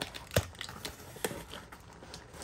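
Cardboard rustles and knocks against something close by.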